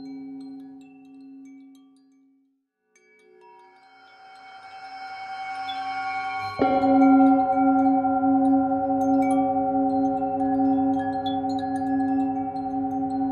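A singing bowl rings with a steady, swelling hum as a mallet circles its rim.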